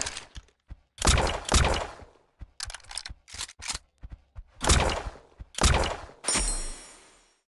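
A sniper rifle fires sharp shots.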